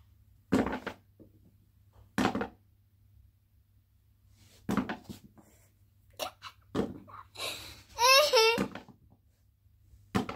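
A young girl laughs and squeals close by.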